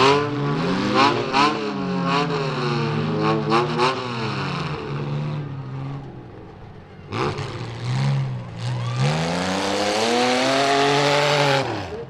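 Car engines rev loudly, rising and falling.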